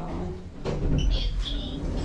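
A button clicks as a finger presses it.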